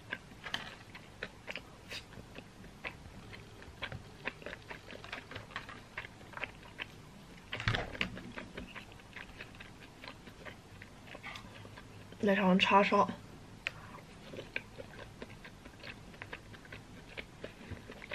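Chopsticks and a plastic spoon click against a plastic container.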